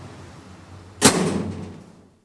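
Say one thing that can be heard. A heavy door slams shut.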